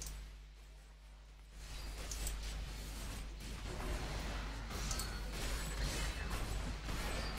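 Weapons clash and slash in a fast fight.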